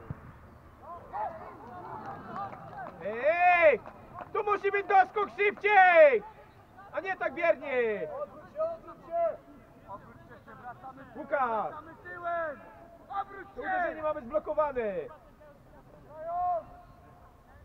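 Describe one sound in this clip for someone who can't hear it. Young men shout to each other across an open playing field.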